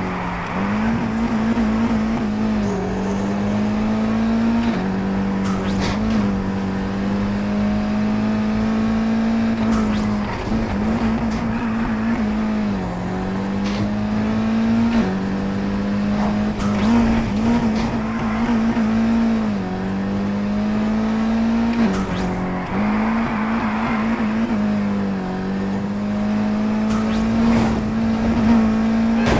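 A sports car engine roars and revs up and down as the car speeds along.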